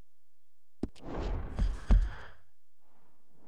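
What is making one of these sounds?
A horse's hooves thud on soft ground.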